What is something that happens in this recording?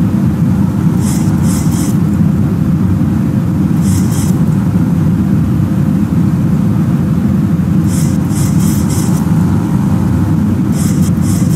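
Windshield wipers swish back and forth across the glass.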